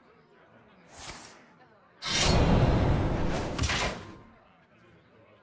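A game's hero power sounds with a magical chime.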